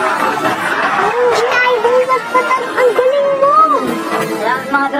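A young girl exclaims excitedly.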